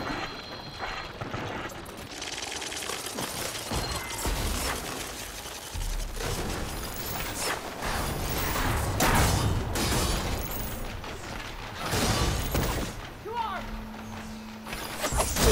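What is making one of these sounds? Footsteps rustle through thick leafy undergrowth.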